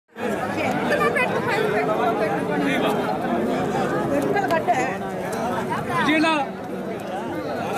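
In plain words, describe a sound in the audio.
A large crowd of men and women chatter loudly outdoors.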